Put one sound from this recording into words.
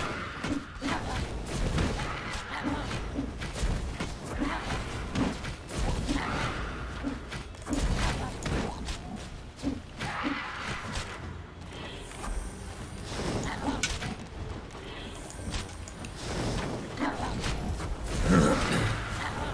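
Magic blasts whoosh and crackle now and then.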